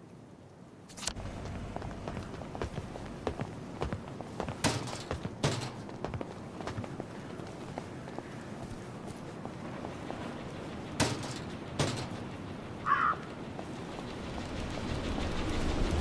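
Footsteps tap on stone paving.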